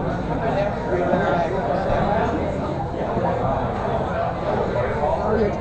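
Many people chatter at once in a large, busy room.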